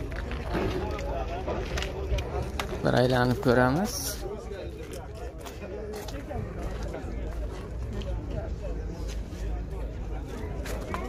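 Men talk nearby in a busy outdoor crowd.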